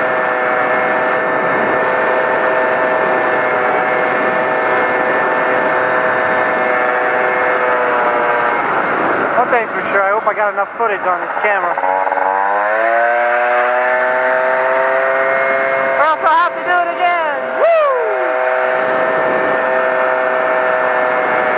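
A motorcycle engine drones steadily, its pitch dropping and rising again as it slows and speeds up.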